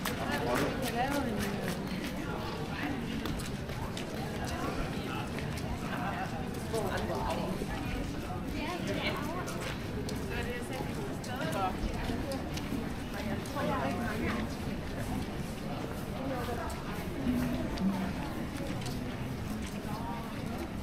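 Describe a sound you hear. Men and women chatter nearby in a busy outdoor street.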